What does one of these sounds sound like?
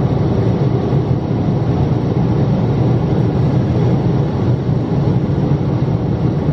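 A jet engine roars steadily in a low, loud rumble, heard from inside an aircraft cabin.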